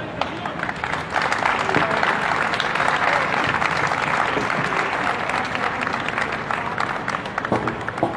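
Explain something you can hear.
A small crowd claps and cheers.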